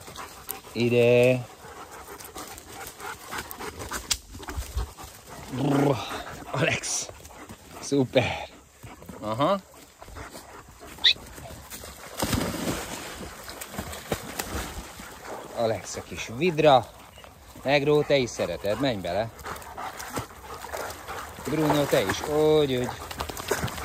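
A dog barks and yelps excitedly.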